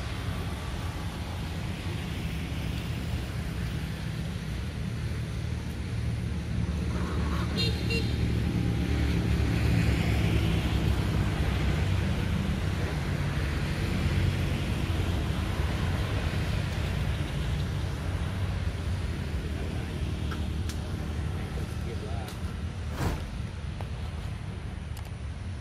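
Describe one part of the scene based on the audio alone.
Wind rustles through tree leaves outdoors.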